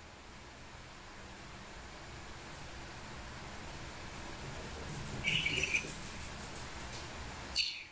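An elderly man speaks softly and calmly over an online call.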